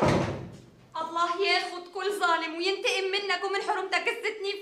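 A young woman pleads loudly and with emotion.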